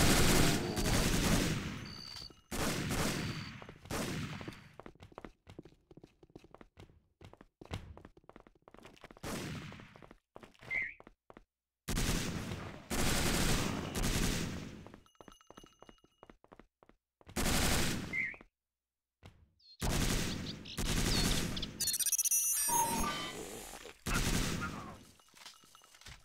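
Gunfire rings out in loud, echoing bursts.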